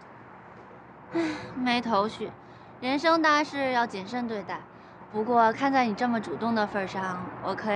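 A young woman answers playfully, close by.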